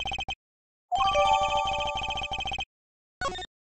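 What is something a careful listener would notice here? A bright chime rings out.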